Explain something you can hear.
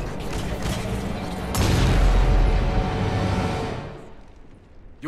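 A loud explosion roars and rumbles, then fades away.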